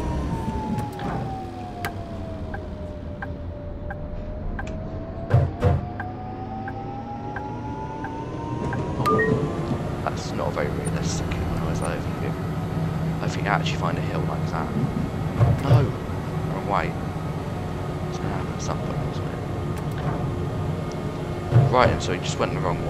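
Tram wheels clack over rail joints.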